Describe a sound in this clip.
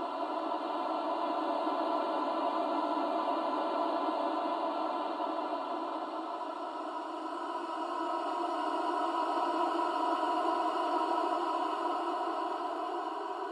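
A young man screams loudly and steadily close by.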